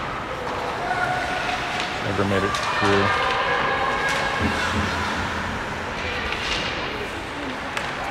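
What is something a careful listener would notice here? Hockey sticks and a puck clack sharply on the ice.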